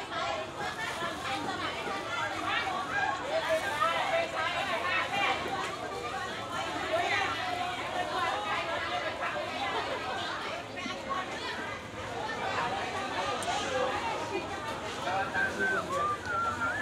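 A crowd of people chatter nearby in a busy outdoor market.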